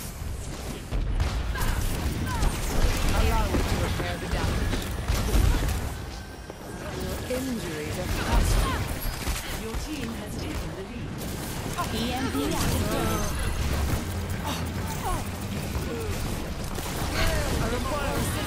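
Blasts and impacts thump loudly in a game battle.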